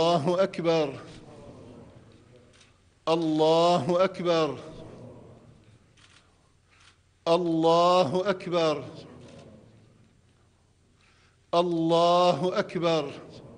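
An elderly man chants a prayer aloud in long phrases in a large echoing hall.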